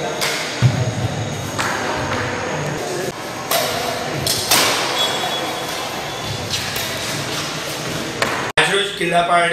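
Shuttlecocks are struck with rackets in an echoing hall.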